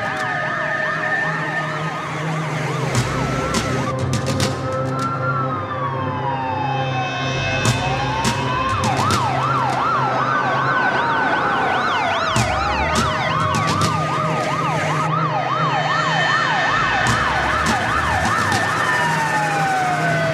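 Several fire engine sirens wail and overlap, rising and falling.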